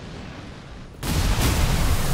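An electric blast crackles and booms.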